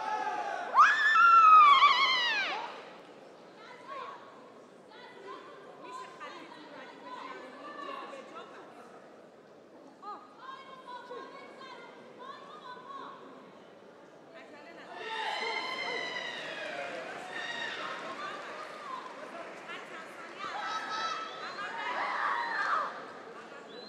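Young women fighters let out loud, sharp shouts.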